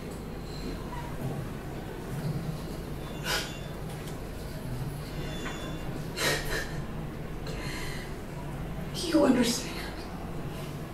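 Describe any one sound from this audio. A woman speaks calmly through loudspeakers in a room.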